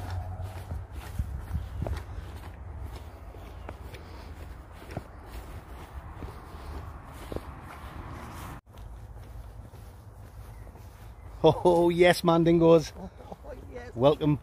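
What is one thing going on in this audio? Footsteps swish through long grass.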